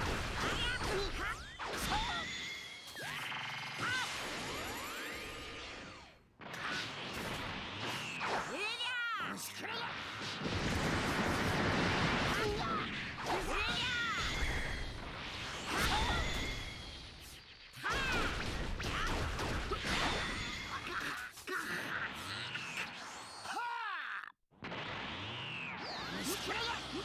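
Energy blasts whoosh and roar.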